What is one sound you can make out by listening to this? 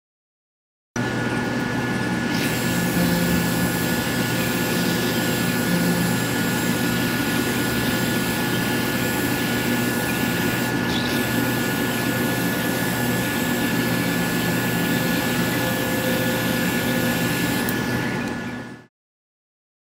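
A power polisher whirs steadily against a car's surface.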